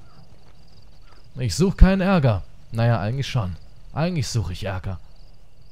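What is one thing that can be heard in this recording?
Boots crunch slowly on dirt.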